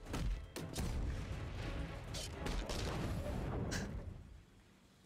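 Fighting sounds thud and clash.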